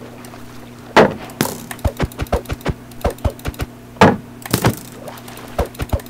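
A video game sword strikes a monster with sharp hits.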